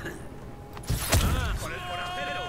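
An explosion bursts with a loud boom.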